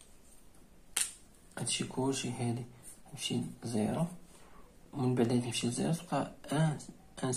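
A pen taps and writes on paper.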